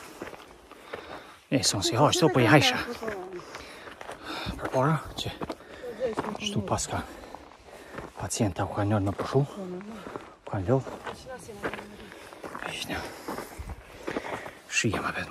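Footsteps crunch on a loose, stony dirt path.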